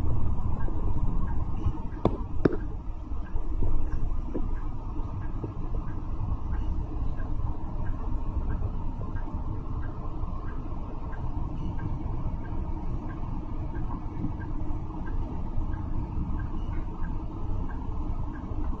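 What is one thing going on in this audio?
A bus engine hums low and steady from inside the bus.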